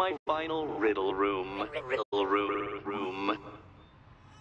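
A man speaks with a sneering, theatrical tone.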